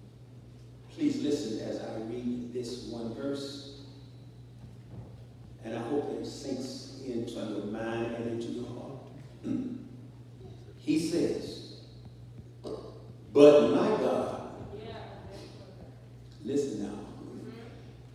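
An elderly man preaches with animation through a microphone in an echoing hall.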